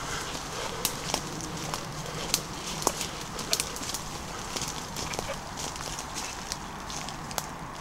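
Footsteps crunch on leaves and twigs along a path.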